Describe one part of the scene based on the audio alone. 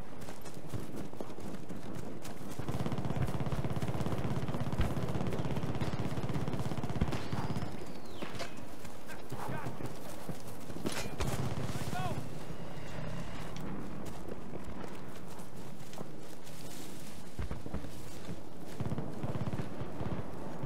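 Footsteps run through grass and rustle through bushes.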